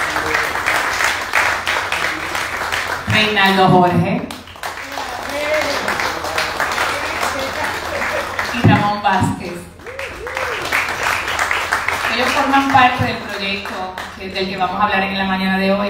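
A group of people applaud and clap their hands.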